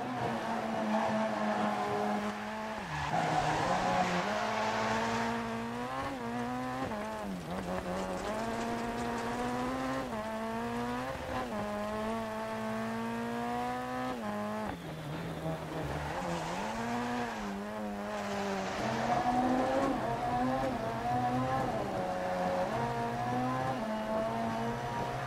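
A rally car engine revs hard, rising and dropping in pitch with each gear change.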